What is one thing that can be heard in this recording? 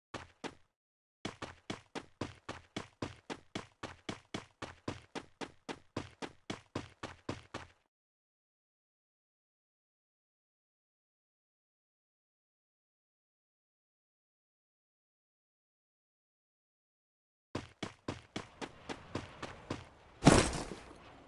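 Footsteps of a game character run over grass in quick, even steps.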